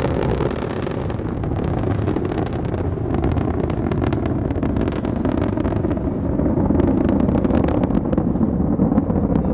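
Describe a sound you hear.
A rocket engine roars loudly with a deep, rumbling crackle.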